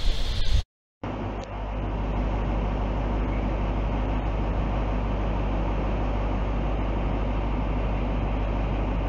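A diesel train engine idles with a steady low hum.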